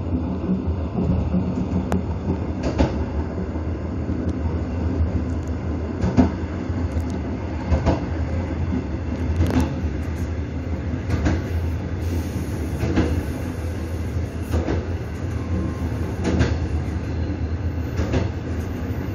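A train rumbles along a rail line.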